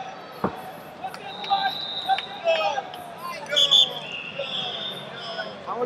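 Spectators yell and cheer loudly.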